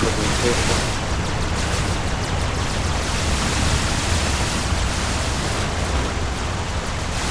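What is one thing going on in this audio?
A spacecraft engine rumbles steadily.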